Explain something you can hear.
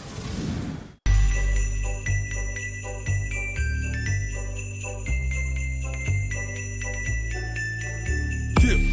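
Upbeat electronic music plays.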